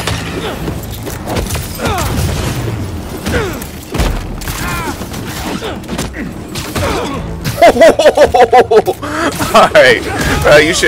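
Punches and kicks land with heavy thuds.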